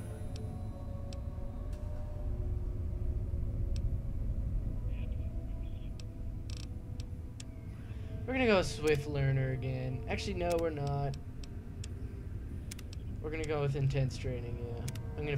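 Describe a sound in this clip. Short soft clicks tick now and then as a menu selection moves.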